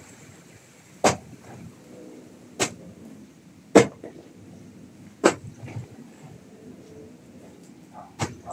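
A blade chops into a thick plant stem with sharp, regular thuds.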